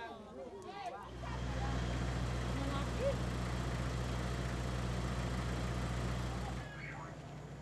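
A small engine runs with a steady low drone.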